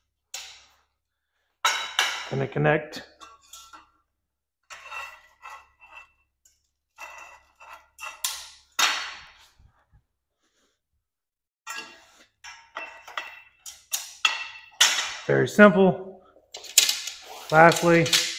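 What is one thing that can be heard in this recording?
Metal rods clatter and scrape on a concrete floor.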